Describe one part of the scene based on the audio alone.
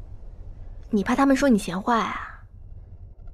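A young woman asks a question softly nearby.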